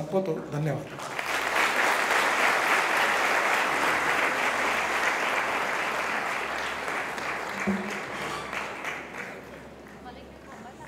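An audience applauds loudly, then the clapping fades.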